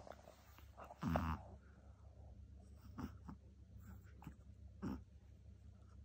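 A small dog chews on a treat with crunchy clicks.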